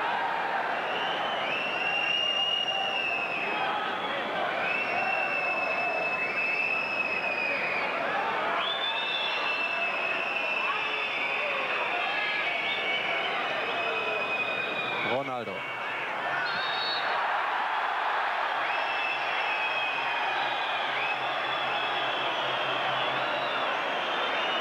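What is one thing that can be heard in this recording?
Fans whistle shrilly in long, drawn-out blasts.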